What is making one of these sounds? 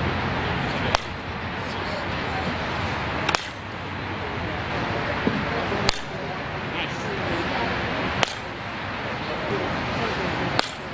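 A bat cracks sharply against a softball, again and again.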